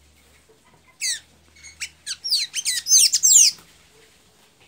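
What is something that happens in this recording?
A small caged bird sings a quick run of high, sweeping chirps close by.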